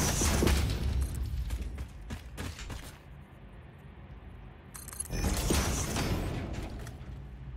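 A humming construction beam crackles with sparks as a piece is built.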